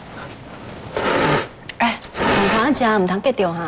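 A man slurps noodles noisily.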